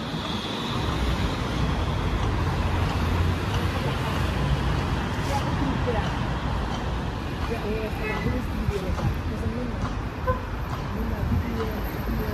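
Traffic rumbles steadily along a nearby street.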